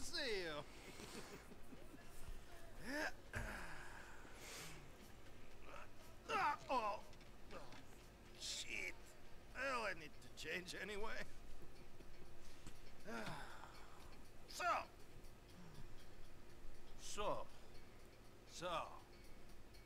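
A man greets loudly and with animation.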